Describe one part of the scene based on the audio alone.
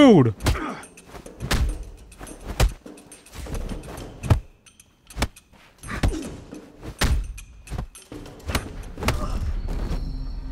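Punches and kicks land with sharp thuds in a game fight.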